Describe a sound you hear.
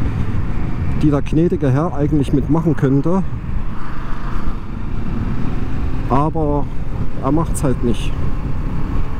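A motorcycle engine revs up and down through the gears.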